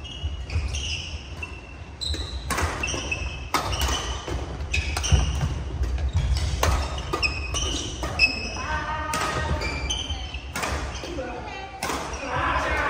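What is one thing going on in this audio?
Sports shoes squeak sharply on a wooden floor.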